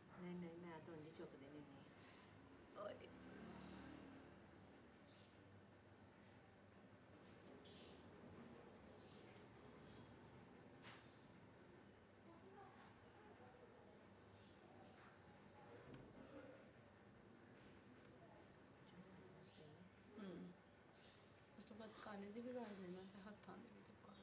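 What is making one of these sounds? A young woman speaks softly close by.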